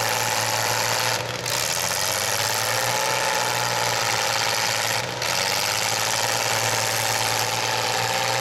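A racing engine roars loudly and steadily nearby.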